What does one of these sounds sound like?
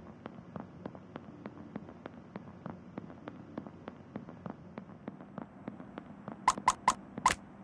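Quick, light footsteps tap steadily on a hard floor.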